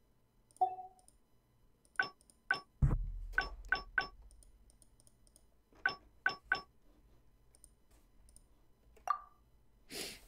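Short game menu chimes click repeatedly.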